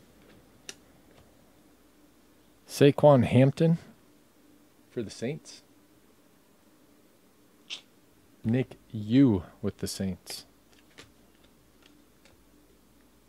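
Trading cards rustle and flick softly as a hand shuffles through a stack.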